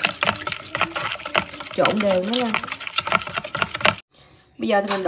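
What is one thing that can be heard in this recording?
A metal spoon scrapes and clinks against a plastic bowl while stirring a thick batter.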